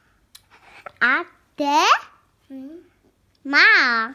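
A young girl speaks in a high, sing-song voice close by.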